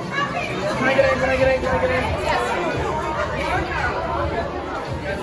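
A young man shouts with excitement close by.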